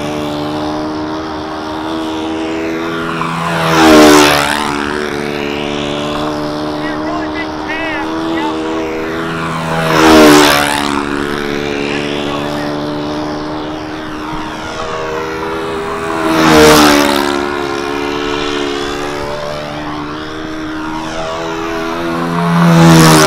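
A model plane's engine drones steadily and roars louder as the plane sweeps past close by, outdoors.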